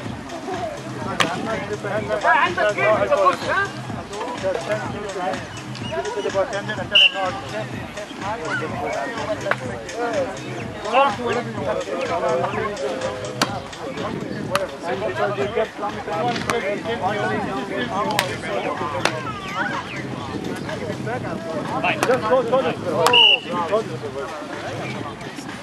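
Several people chatter and call out nearby outdoors.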